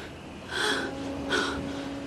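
A young woman sobs.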